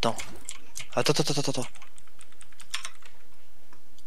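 Computer keyboard keys click and clack under typing fingers.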